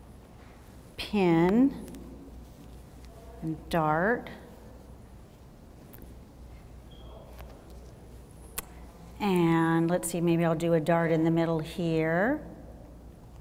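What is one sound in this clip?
A woman speaks in short bursts through a clip-on microphone.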